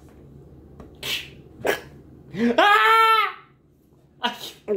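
A teenage boy laughs close by.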